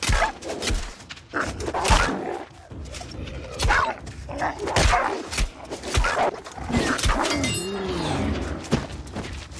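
Heavy blows strike a wolf in quick succession.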